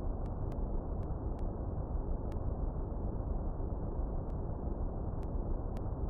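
Short electronic blips tick now and then as text prints out.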